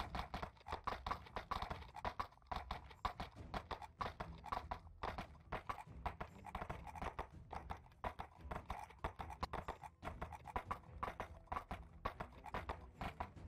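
Horse hooves clop steadily along a dirt path.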